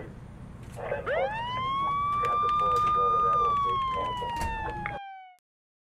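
A police siren wails close by, then slowly falls in pitch.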